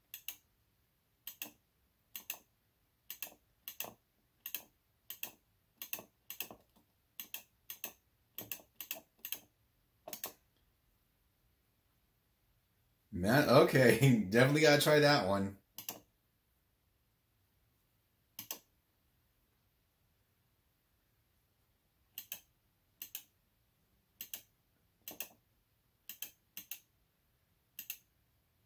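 Short electronic beeps sound as a game menu is scrolled.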